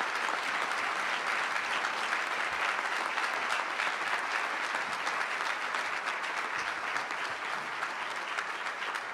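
A crowd claps and applauds steadily in a large hall.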